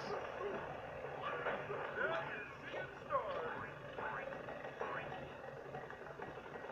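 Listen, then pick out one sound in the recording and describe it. Cartoonish game sound effects chirp and whoosh quickly.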